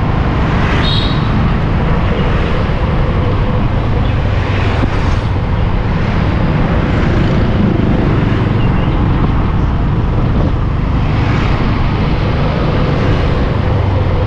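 Motorbike engines hum and pass nearby.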